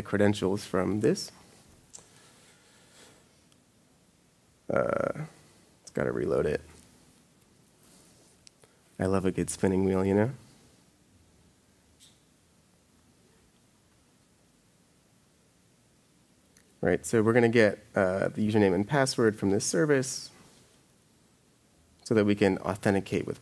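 A young man talks calmly into a microphone, in bursts with pauses.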